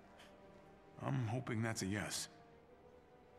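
A man answers calmly in a deep voice, close by.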